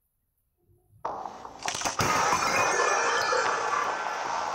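Glass cracks and shatters loudly.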